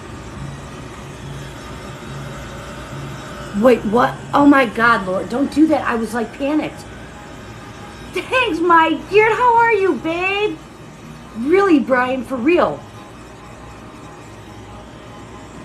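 A heat gun blows with a steady whirring hum.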